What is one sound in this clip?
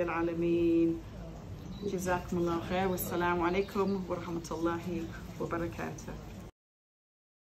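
A young woman speaks calmly close to a headset microphone.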